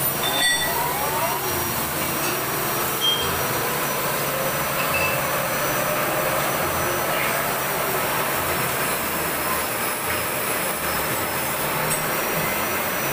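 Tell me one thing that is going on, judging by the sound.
A lathe cutting tool scrapes steadily against a spinning metal part.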